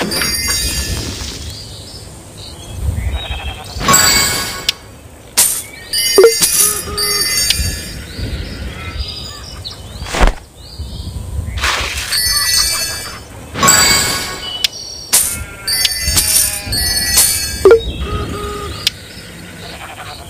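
Bright game chimes and coin jingles ring out again and again.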